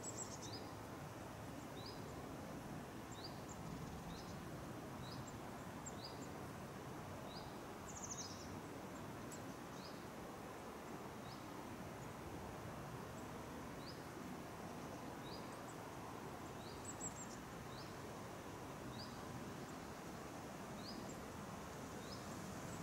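Wind rustles through the leafy treetops outdoors.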